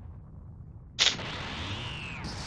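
Energy crackles and surges loudly.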